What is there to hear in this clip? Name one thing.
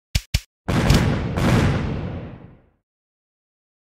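An explosion booms and rumbles away.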